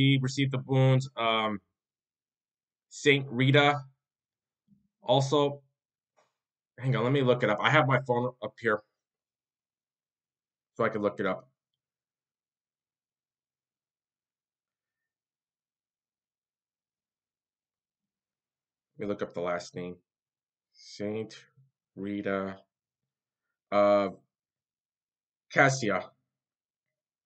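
A man speaks calmly and close to a microphone, in short bursts with long pauses.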